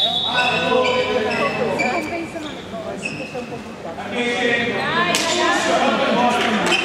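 Young players and spectators call out across an echoing hall.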